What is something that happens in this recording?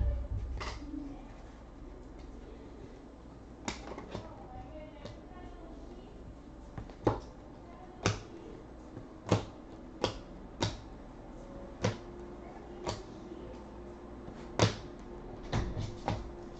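Trading cards click and flick as they are shuffled through by hand.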